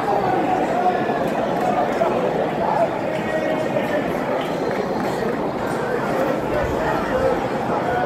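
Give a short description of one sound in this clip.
A large stadium crowd murmurs and chatters steadily all around.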